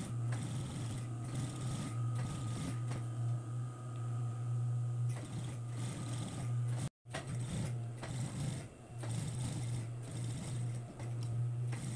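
A sewing machine runs with a steady hum and rapid stitching.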